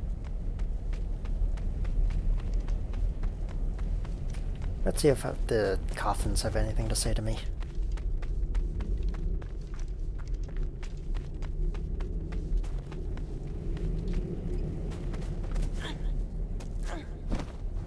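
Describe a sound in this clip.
Footsteps crunch steadily on soft ground.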